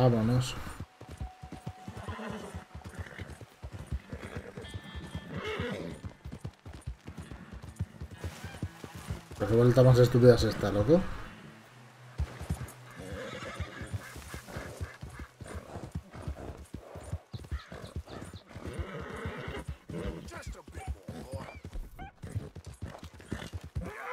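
A horse's hooves clop steadily on a dirt trail.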